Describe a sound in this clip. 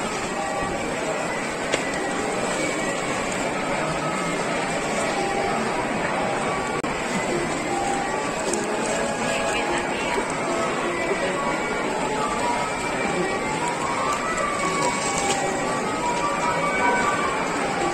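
Plastic-wrapped packages rustle as they are handed over.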